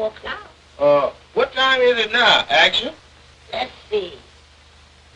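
A man speaks with animation, up close.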